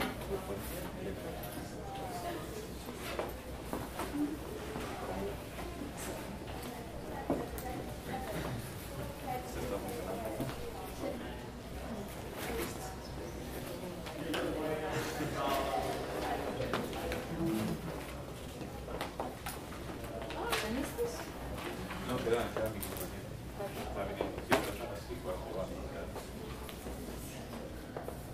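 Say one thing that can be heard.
Several young men and women talk and murmur nearby in a room.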